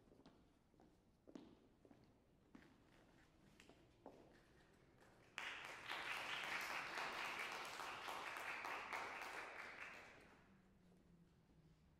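Footsteps sound on a wooden stage in an echoing hall.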